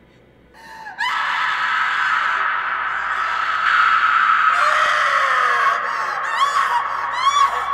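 A young woman screams loudly and desperately up close.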